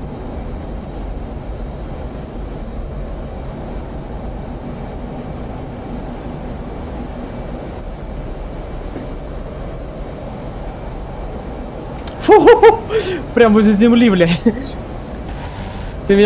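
A jet engine roars steadily with a low rumble.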